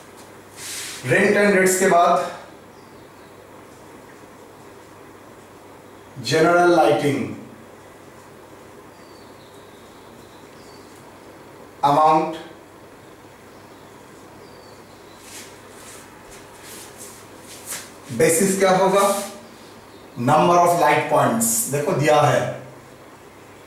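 A man speaks in short, calm phrases nearby, with pauses between them.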